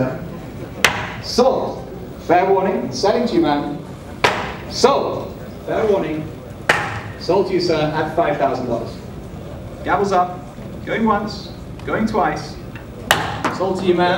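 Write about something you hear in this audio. A wooden gavel bangs sharply on a podium.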